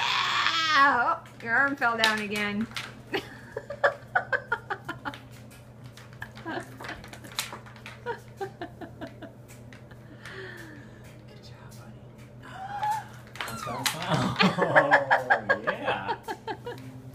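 A baby jumper bounces with rhythmic creaks and rattling toy clicks.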